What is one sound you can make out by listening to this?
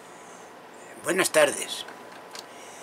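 An elderly man speaks briefly and loudly into a computer microphone.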